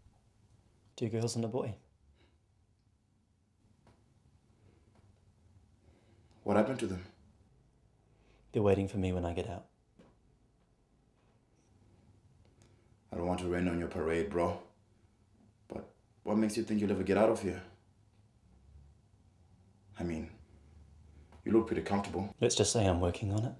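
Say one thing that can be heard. A second young man answers in a low, calm voice, close by.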